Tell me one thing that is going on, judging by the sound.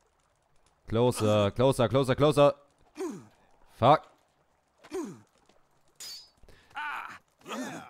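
Steel swords clash and clang repeatedly.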